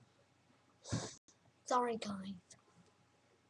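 A young woman speaks briefly, close up.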